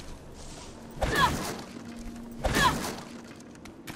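A metal bar swings with a sharp whoosh and strikes.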